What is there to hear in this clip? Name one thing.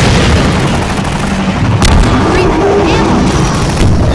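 A rocket launches with a loud whoosh.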